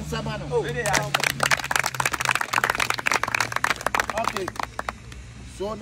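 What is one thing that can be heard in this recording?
A group of young people clap their hands rapidly.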